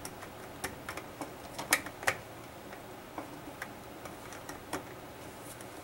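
Plastic parts click and knock close by.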